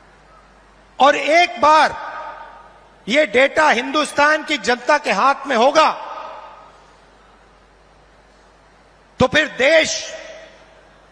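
A man speaks forcefully into a microphone, his voice echoing through loudspeakers outdoors.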